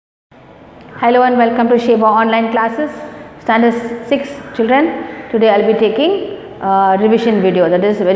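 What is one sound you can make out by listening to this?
A woman speaks clearly and steadily, close to a microphone.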